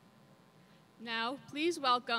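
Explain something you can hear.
A young woman speaks into a microphone over a loudspeaker.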